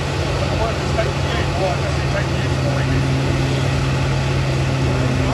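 An engine roars loudly at high revs.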